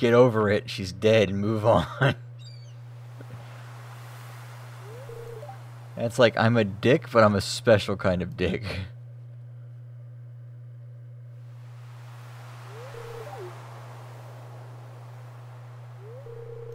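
Soft waves wash gently onto a shore.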